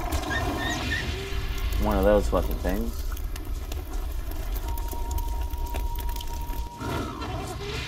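Flames crackle and hiss.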